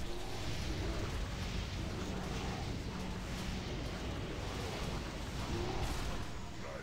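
Magic fire roars and crackles loudly.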